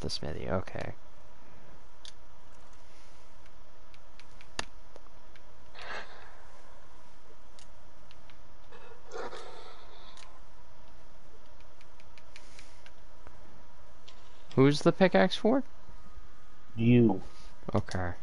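Short electronic menu clicks sound now and then.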